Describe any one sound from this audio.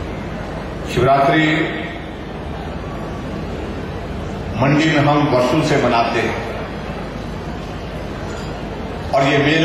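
A man gives a speech loudly through a microphone and loudspeakers.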